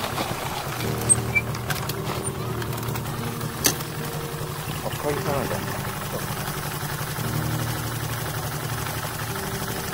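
A motorcycle engine idles with a steady low rumble close by.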